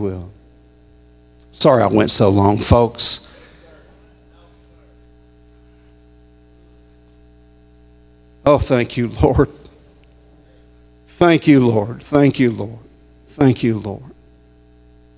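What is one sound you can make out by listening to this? A middle-aged man speaks slowly and calmly into a microphone, with long pauses, in a reverberant hall.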